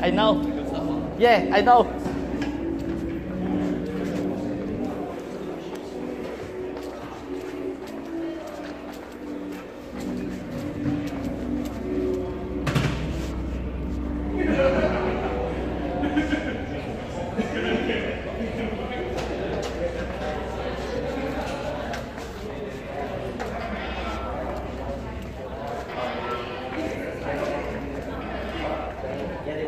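A crowd of people chatters indistinctly in a large room.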